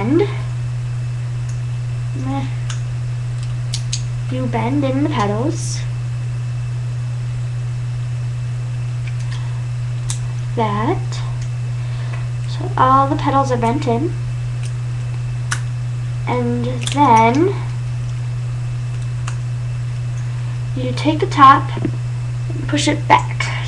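A young woman talks calmly, close by, in short bursts.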